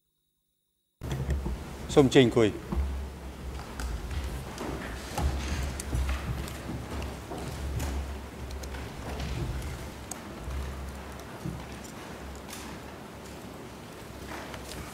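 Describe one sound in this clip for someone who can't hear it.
Chairs creak and clothes rustle as people settle into their seats.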